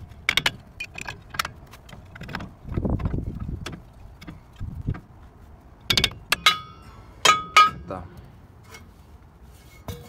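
A metal brake drum scrapes as it is pulled off.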